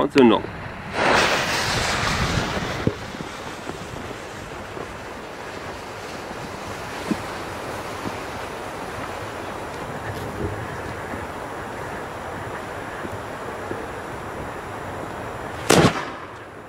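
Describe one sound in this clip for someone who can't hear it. A fuse hisses and sputters as it burns.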